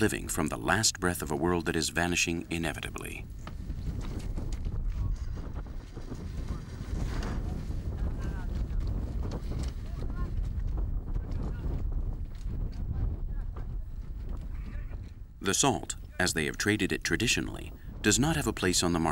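Camels plod over loose stones.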